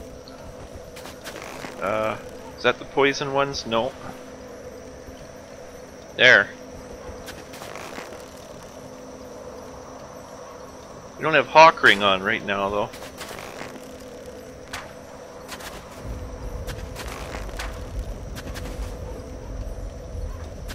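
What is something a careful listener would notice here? A bow twangs as arrows are shot.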